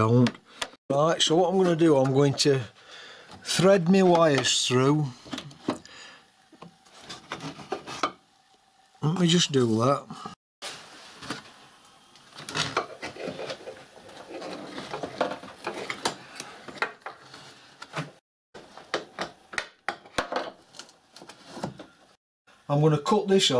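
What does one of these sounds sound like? Plastic trim creaks and clicks as it is pulled and pressed into place.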